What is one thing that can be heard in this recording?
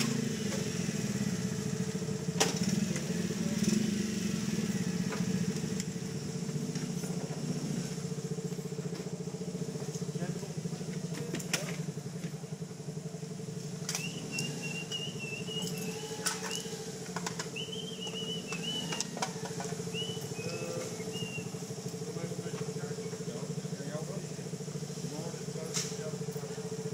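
A motorcycle engine idles close by with a steady hum.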